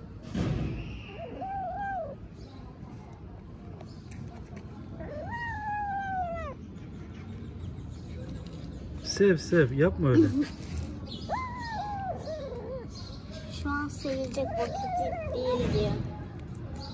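A kitten chews wet food with soft smacking sounds.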